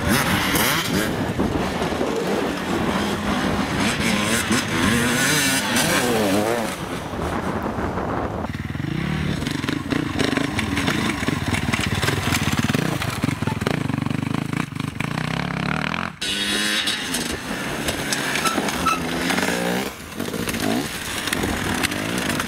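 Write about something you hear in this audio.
A dirt bike engine revs loudly and sputters up close.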